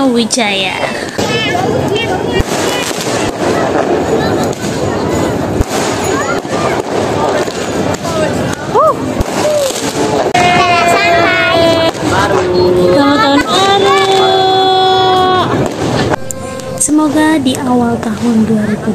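Fireworks bang and crackle overhead.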